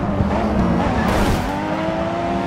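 Tyres screech as a car slides through a corner.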